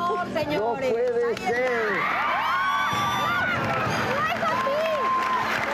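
Young women shriek and cheer excitedly.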